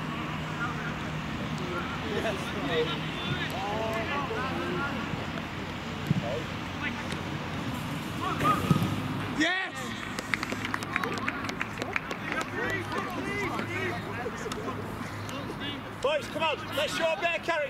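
Young men shout to each other outdoors across a football pitch.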